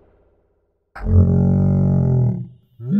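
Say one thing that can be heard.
A cartoonish male voice lets out a long, loud yell.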